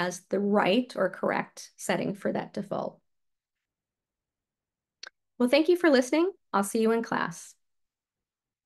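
A woman speaks calmly into a microphone, as if over an online call.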